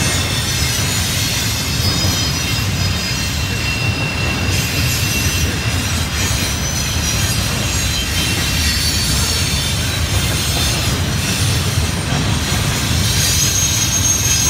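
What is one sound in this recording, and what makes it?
A long freight train rumbles and clatters steadily along the tracks nearby.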